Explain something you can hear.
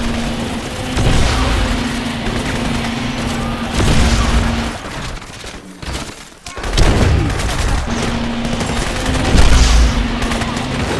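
An explosion booms with a deep rumble.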